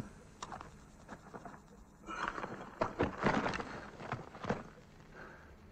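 Cloth and gear rustle as a man searches through rubble.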